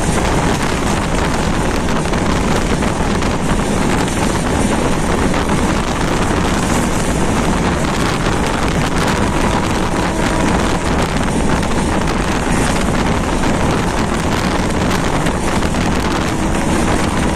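A train rumbles steadily along the tracks, wheels clattering on the rails.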